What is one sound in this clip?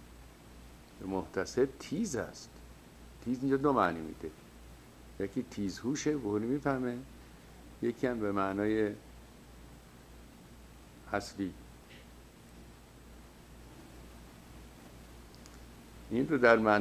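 An older man speaks calmly into a close microphone, with pauses.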